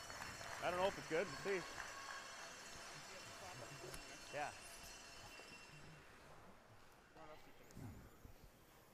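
A crowd murmurs quietly in the background.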